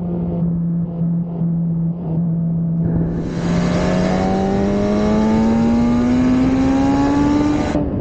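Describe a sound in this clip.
A motorcycle engine hums steadily, then revs higher as the bike accelerates.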